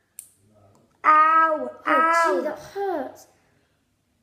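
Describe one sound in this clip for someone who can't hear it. A young boy speaks loudly close by.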